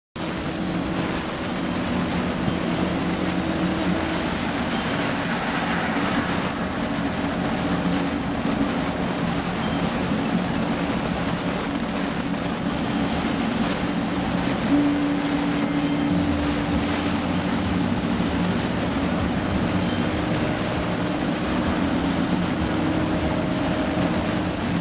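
Tyres roll on the road in a steady rush.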